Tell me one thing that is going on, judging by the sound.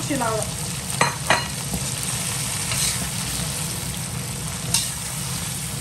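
A spatula clinks and scrapes against a wok.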